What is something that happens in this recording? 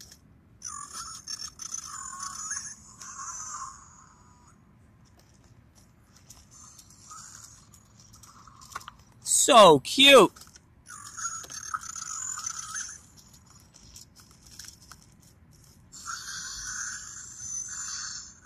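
Electronic toy dinosaurs roar and chirp through small built-in speakers.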